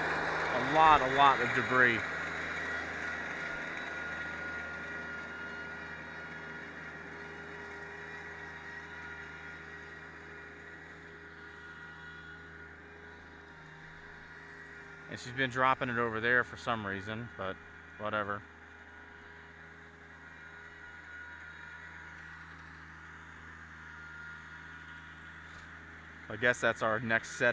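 A tractor engine rumbles steadily, fading as it drives away.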